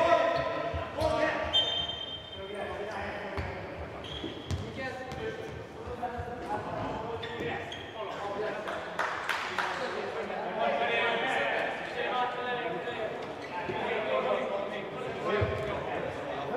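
A ball is kicked with sharp thumps on a hard indoor floor.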